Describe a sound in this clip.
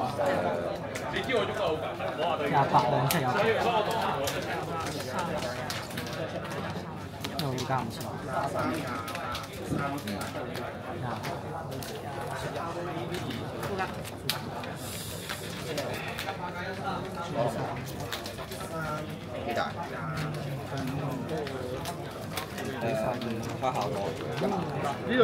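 Playing cards are shuffled and tapped down on a table.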